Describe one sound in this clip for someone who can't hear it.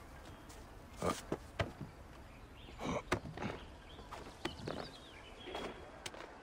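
Hands grab and scrape while climbing a vine-covered wall.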